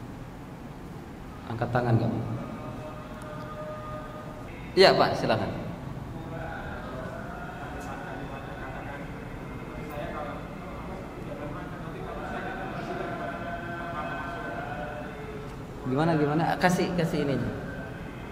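A middle-aged man speaks calmly and with animation into a microphone in an echoing room.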